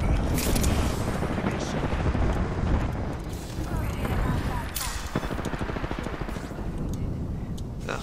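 Fire roars and crackles loudly, then dies down.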